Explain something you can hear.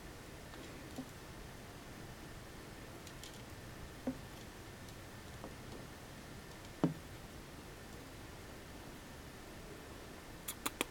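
A fingertip taps lightly on a glass tank, now and then.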